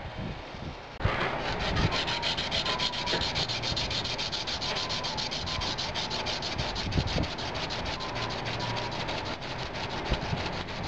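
A file rasps rapidly back and forth along a metal blade.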